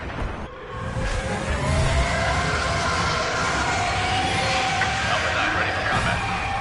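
A fighter craft roars steadily overhead.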